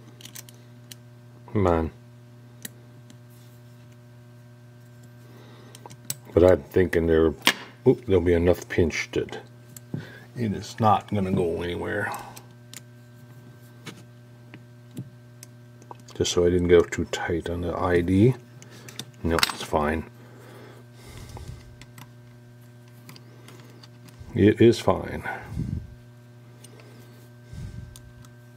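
A hex key clicks and scrapes against small metal screws.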